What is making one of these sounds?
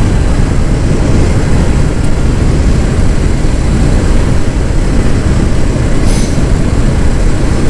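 A motorcycle engine rumbles steadily while riding at speed.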